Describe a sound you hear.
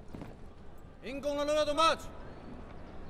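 A man shouts a long drill command outdoors.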